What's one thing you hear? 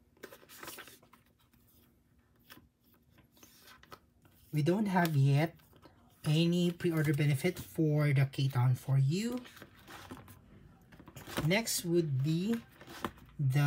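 Plastic sleeves rustle and crinkle as cards are slid in and out.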